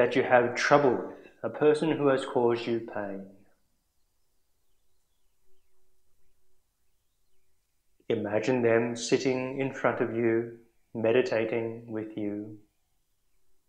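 A man speaks calmly and slowly, with long pauses.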